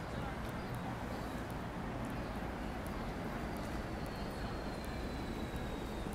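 A bus drives past on the street.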